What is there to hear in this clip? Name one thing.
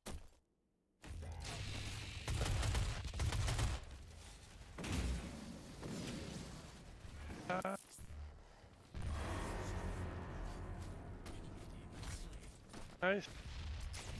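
Heavy gunfire rattles in quick bursts.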